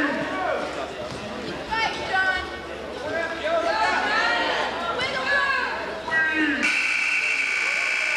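A referee slaps a wrestling mat with his hand.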